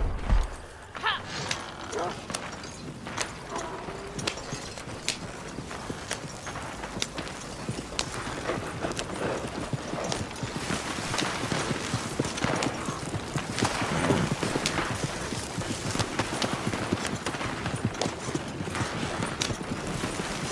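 Horse hooves clop steadily on dirt.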